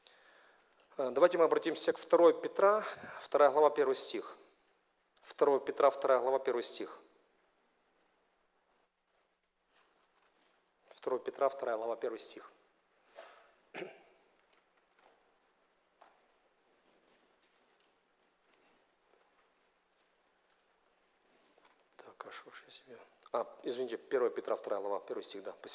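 A man speaks calmly through a microphone, with long pauses.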